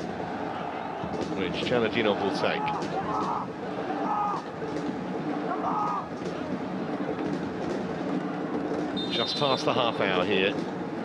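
A large crowd cheers and chants throughout a stadium.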